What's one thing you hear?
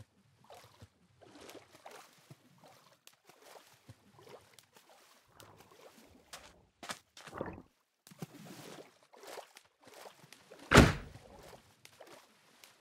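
Water splashes softly as a swimmer paddles along.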